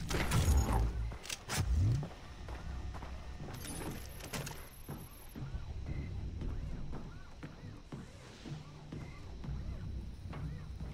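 Footsteps thud steadily on metal stairs and hard ground.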